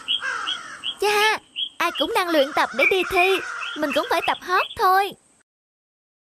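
A cartoon bird speaks in a high, animated voice.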